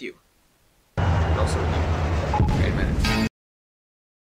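A train crashes with a loud, rumbling explosion.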